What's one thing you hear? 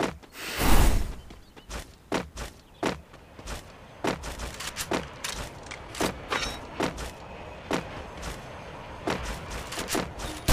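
Footsteps thud quickly on grass.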